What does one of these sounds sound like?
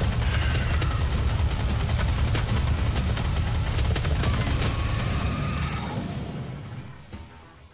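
Loud explosions rumble deeply and then fade away.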